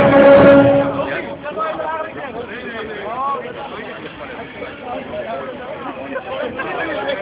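Riders scream on a swinging fairground ride.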